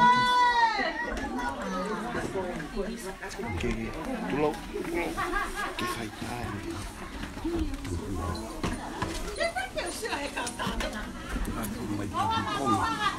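A crowd of women and men chatter nearby.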